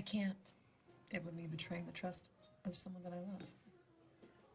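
A woman speaks quietly and calmly nearby.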